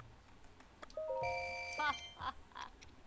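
Short electronic menu chimes beep.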